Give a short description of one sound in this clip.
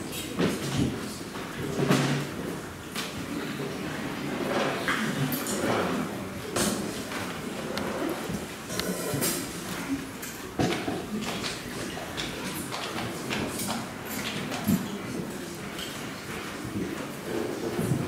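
A brass band plays a hymn in an echoing hall.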